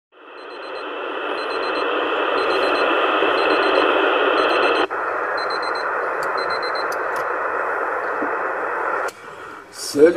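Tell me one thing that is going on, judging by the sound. Radio static hisses loudly and steadily from a receiver.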